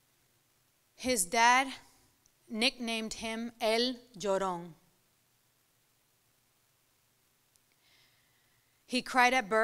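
A young woman recites expressively into a microphone, with long pauses.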